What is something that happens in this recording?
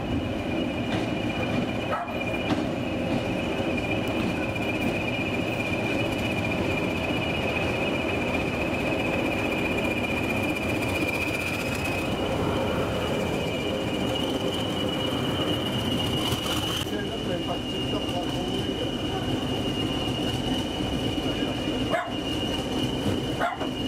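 A train rumbles steadily as it pulls slowly away.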